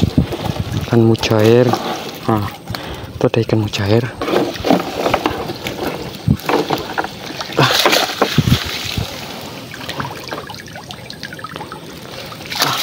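Water splashes and drips as a fishing net is pulled from it.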